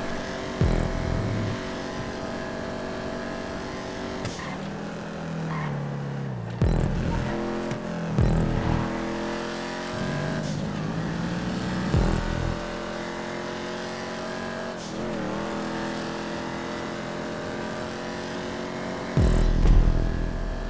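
A car engine roars steadily, its pitch dropping and climbing with each gear change.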